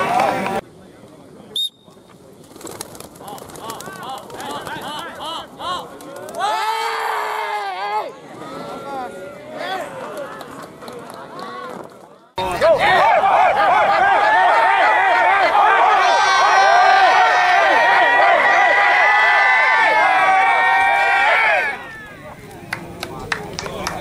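Men shout and cheer excitedly outdoors.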